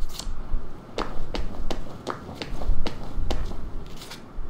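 Footsteps tap steadily on stone paving.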